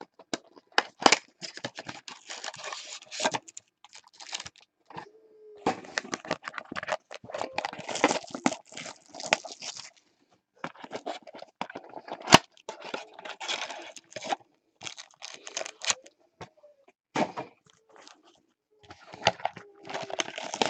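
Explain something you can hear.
Cardboard and foil wrappers rustle and crinkle as hands handle them.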